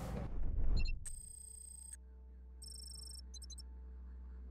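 Short electronic interface tones chime.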